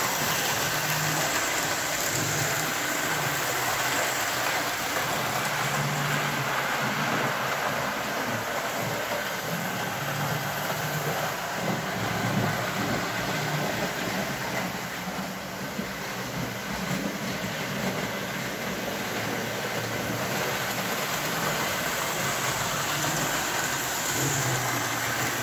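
Toy trains rumble and clatter steadily along metal tracks.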